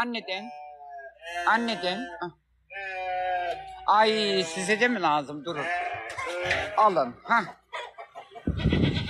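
Goats bleat loudly close by.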